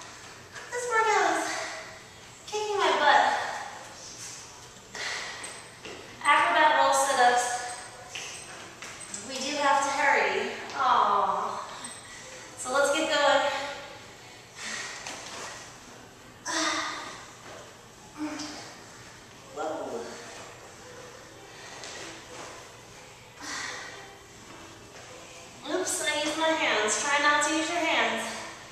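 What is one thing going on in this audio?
A young woman speaks calmly and clearly, close by.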